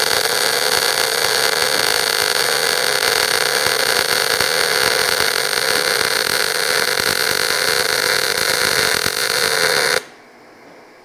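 A welding arc crackles and hisses steadily, close by.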